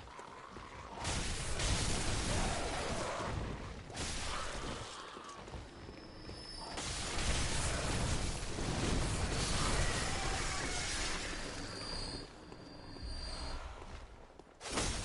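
Blades slash and strike flesh with wet thuds.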